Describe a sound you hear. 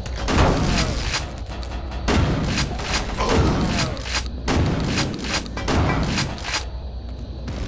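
A shotgun fires loud, booming blasts in quick succession.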